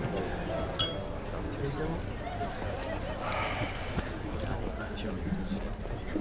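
A crowd of people chatters in a low murmur.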